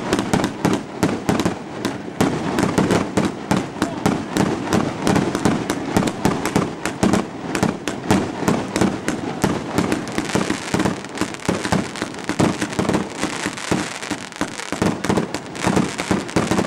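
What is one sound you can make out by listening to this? Fireworks crackle and bang in rapid bursts close by.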